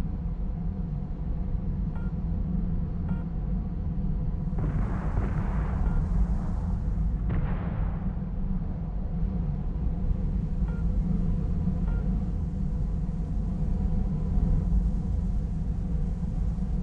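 A jet engine roars steadily in a deep, continuous rumble.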